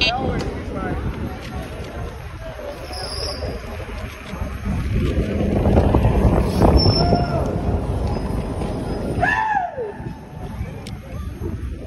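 Wind rushes and buffets loudly against the microphone outdoors.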